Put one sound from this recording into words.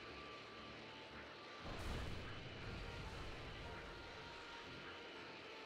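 A roaring, whooshing energy rush sounds steadily and swells louder partway through.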